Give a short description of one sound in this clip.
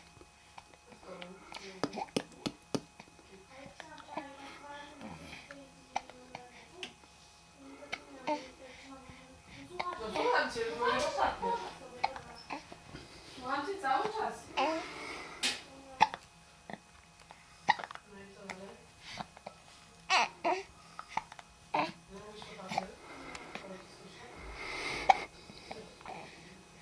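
A baby coos and babbles softly close by.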